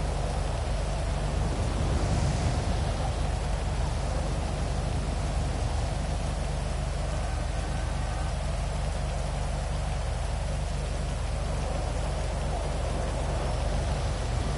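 A motorcycle engine idles steadily close by.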